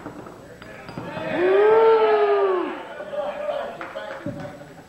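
Men shout and cheer loudly.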